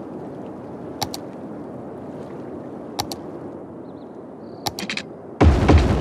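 Soft clicks sound a few times as a tool is picked.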